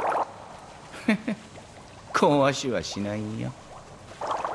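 A man speaks with a smug, teasing tone.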